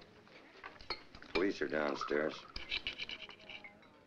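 Wine pours into a glass.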